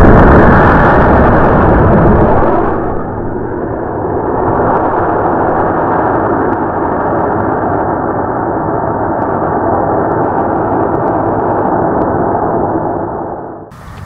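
A rocket motor roars loudly and fades as the rocket climbs away.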